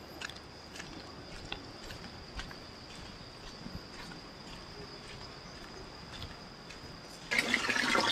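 Footsteps pad softly on a dirt path.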